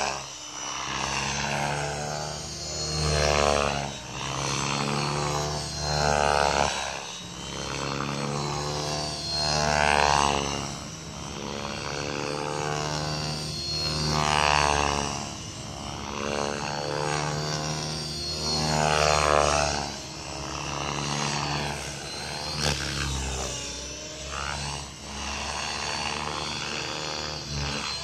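A small model aircraft engine buzzes overhead, growing louder and higher as it swoops past and fading as it flies off.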